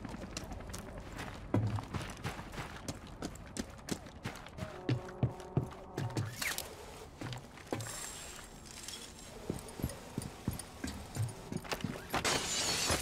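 Footsteps thud quickly on hard ground.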